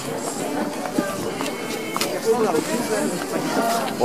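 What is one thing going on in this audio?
Men and women in a passing crowd talk nearby outdoors.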